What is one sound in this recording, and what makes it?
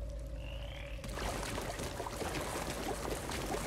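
Footsteps echo on a stone floor.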